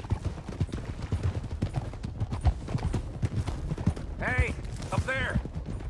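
Horse hooves clop steadily on a rocky trail.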